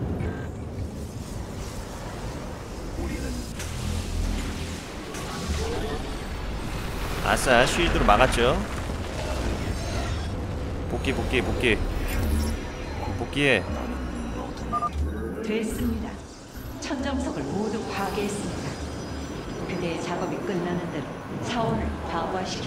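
Electronic game sound effects chime and whoosh.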